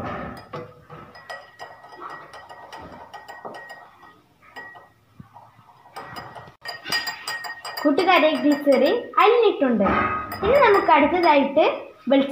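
A metal spoon clinks against a glass while stirring water.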